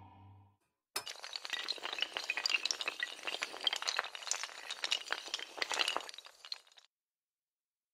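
Hard tiles clatter and rattle as they topple over one another.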